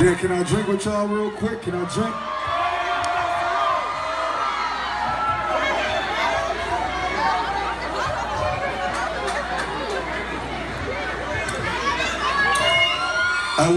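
A large crowd sings and shouts loudly nearby.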